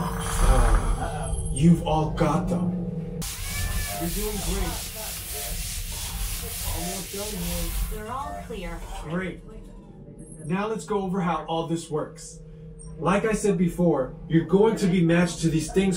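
A man speaks with animation over a loudspeaker in a small enclosed space.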